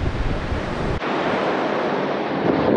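A young man speaks toward the listener outdoors.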